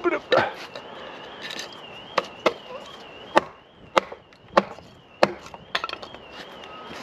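A knife cuts and chips at wood with sharp, repeated cracks.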